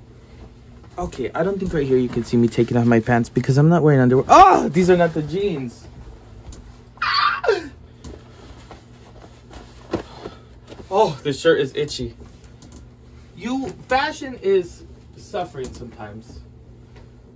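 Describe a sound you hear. A young man talks animatedly close by.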